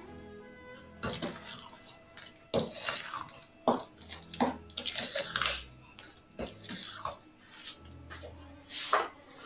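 A spatula scrapes and slaps through thick batter in a glass bowl.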